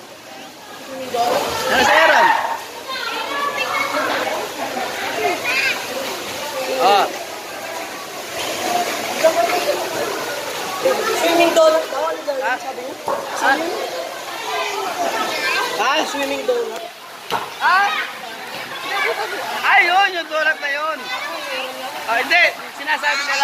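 Children shout and chatter.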